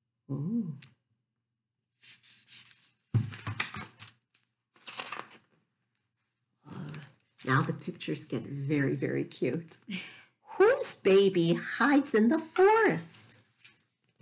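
A woman reads aloud with animation, close to a microphone.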